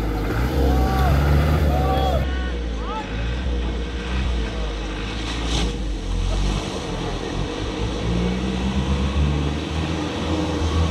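An off-road vehicle's engine rumbles and revs loudly.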